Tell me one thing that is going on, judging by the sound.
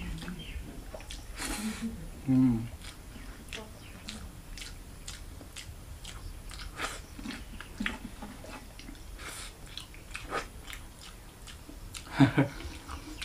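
A young man chews food with soft smacking sounds.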